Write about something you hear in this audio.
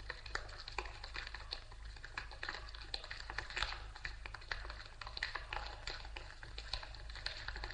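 Footsteps shuffle on concrete far off in an echoing yard.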